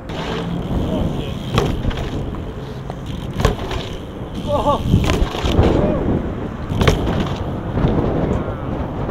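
Bike tyres roll and rumble over concrete.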